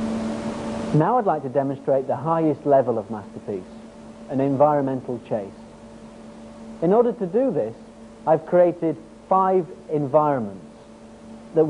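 A man speaks calmly and clearly close to a microphone.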